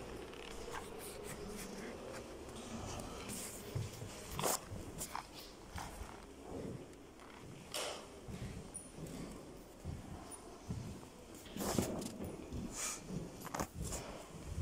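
Footsteps knock and creak on a wooden floor indoors.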